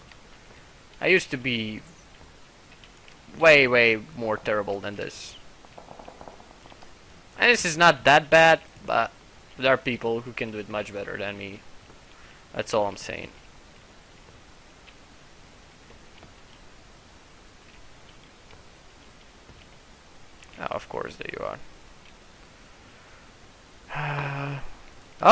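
A young man talks in short bursts close to a microphone.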